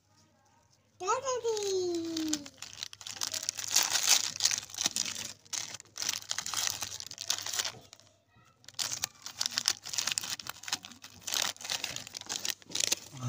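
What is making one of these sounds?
A plastic wrapper crinkles loudly as hands tear it open.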